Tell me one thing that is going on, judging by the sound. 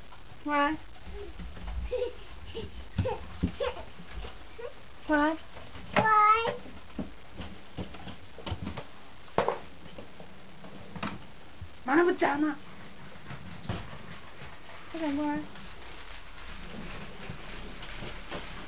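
A baby walker's wheels rattle and knock across the floor.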